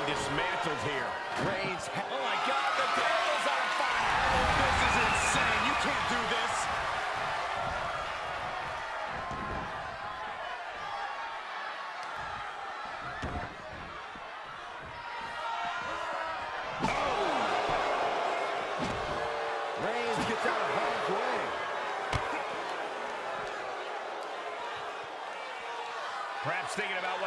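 A large crowd cheers and roars in a big hall.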